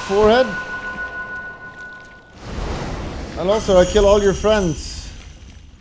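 A man speaks with animation into a nearby microphone.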